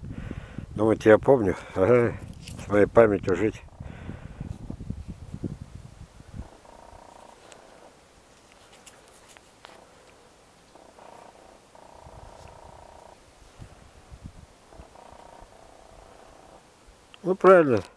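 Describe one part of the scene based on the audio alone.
Thin bark rustles softly as fingers bend and roll it.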